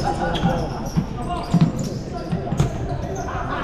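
A ball thuds on the floor and bounces.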